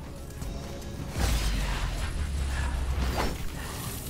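Sword blades slash and clang in a fight.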